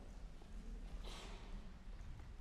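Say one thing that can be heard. A stool scrapes on a wooden stage.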